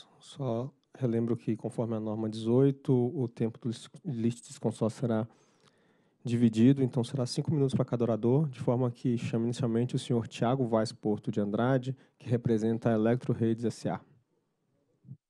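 A man speaks steadily into a microphone, heard through a loudspeaker.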